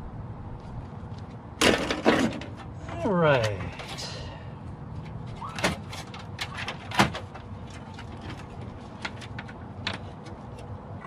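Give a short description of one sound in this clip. Metal parts clink and rattle as components are pried from a computer case.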